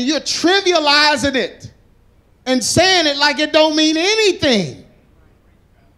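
A middle-aged man sings loudly through a microphone.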